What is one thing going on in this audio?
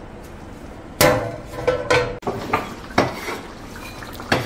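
A metal lid clanks against a pan.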